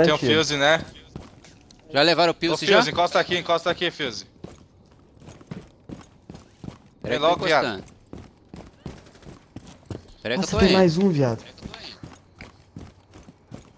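Footsteps tread on hard ground.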